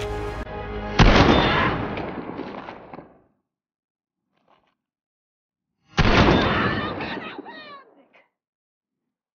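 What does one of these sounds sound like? A shotgun fires with a loud booming blast that echoes away.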